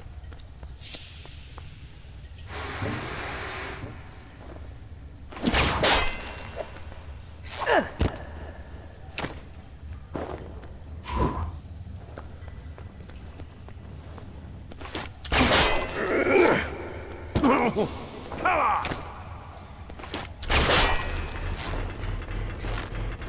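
Game sound effects clatter and whoosh in short bursts.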